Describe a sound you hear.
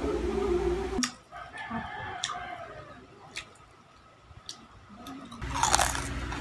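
Crispy fried chicken crunches and crackles as it is torn apart.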